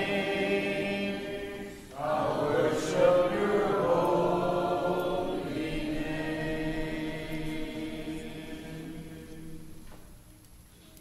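A man sings, heard through a microphone in a large room.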